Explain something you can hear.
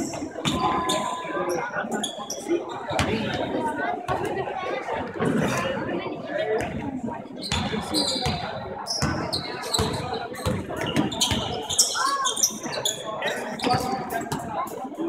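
Basketball shoes squeak sharply on a hard floor.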